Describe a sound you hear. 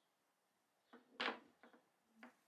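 A small metal tool clicks down onto a table.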